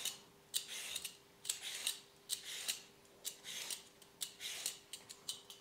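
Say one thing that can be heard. A peeler scrapes rhythmically along the skin of a gourd.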